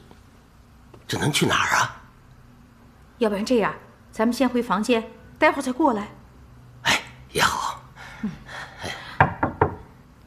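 A middle-aged woman answers calmly nearby.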